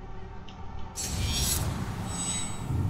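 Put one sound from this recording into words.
A video game menu plays a sudden whooshing boom with a bright shimmer.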